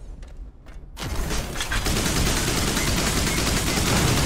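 An energy weapon fires with a steady rushing hiss.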